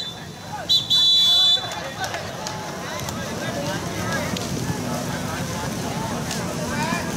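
Players shout to each other across an outdoor pitch.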